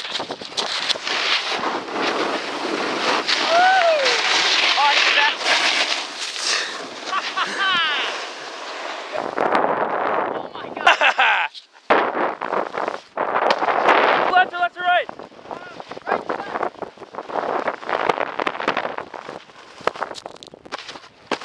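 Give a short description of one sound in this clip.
A snowboard scrapes and hisses across hard snow.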